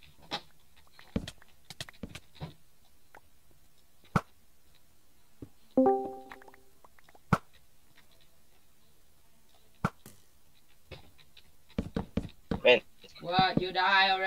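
Wooden blocks are placed with short soft knocks.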